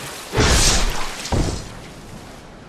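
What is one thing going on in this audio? A sword swings and strikes with a heavy blow.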